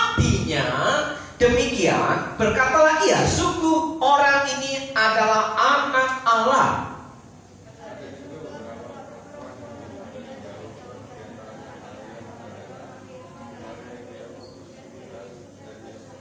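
A man reads aloud into a microphone in a hall that echoes.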